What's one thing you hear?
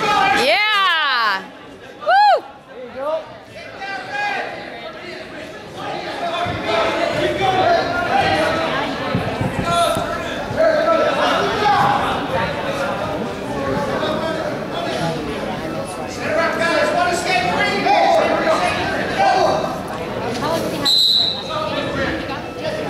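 A male referee calls out to the wrestlers.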